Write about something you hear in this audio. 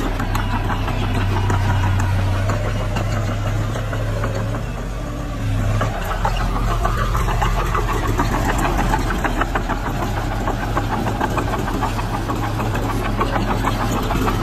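A bulldozer engine rumbles steadily close by.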